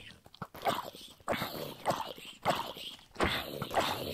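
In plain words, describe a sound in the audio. A sword strikes zombies with dull thuds.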